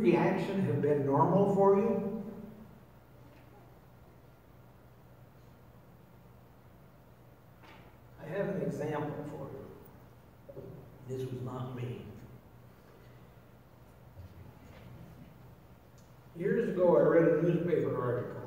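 A man speaks calmly through a microphone in an echoing hall, pausing between phrases.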